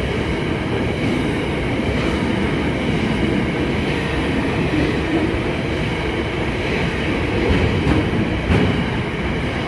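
A freight train rumbles past close by, its wheels clattering steadily on the rails.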